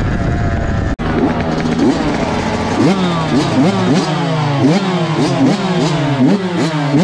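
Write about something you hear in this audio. A second dirt bike engine revs nearby.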